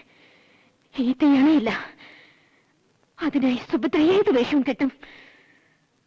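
A woman speaks tensely and angrily, close by.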